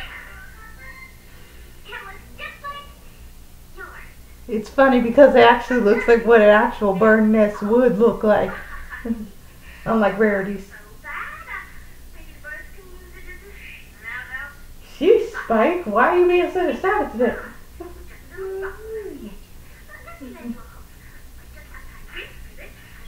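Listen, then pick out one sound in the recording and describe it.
Cartoon voices play from a television across the room.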